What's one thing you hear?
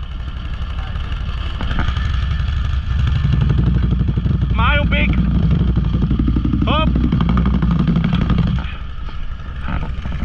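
A quad bike engine idles with a low, steady rumble close by.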